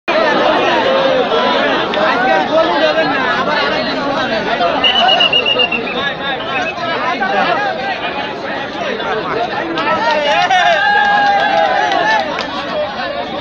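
Men call out excitedly nearby.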